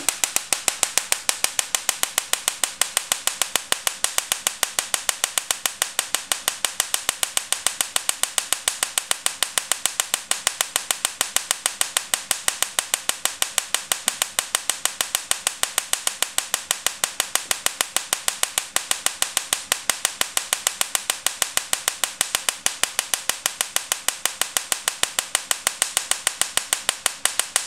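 Electric sparks snap in a fast, steady, even rhythm.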